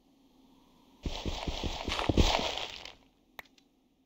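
Blocks crunch and crumble as they are broken in a video game.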